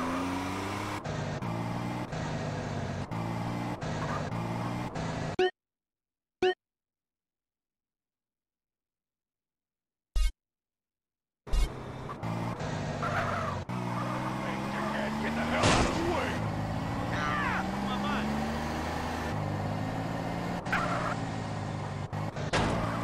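A car engine hums and revs as a car drives along.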